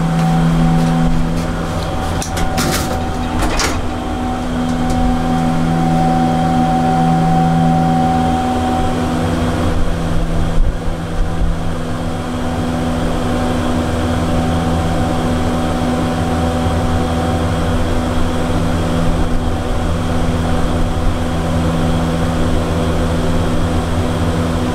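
An old traction elevator hums steadily as its cab travels.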